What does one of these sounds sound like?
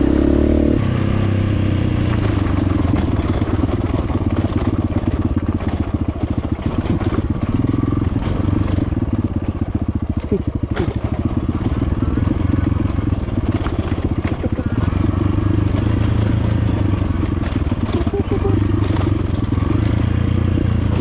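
A dirt bike engine labours, climbing a rocky dirt track.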